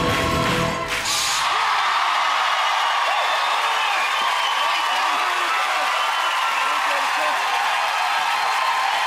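A large crowd cheers, whistles and shouts in a big hall.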